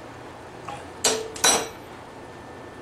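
A hammer strikes metal with a sharp, ringing clang.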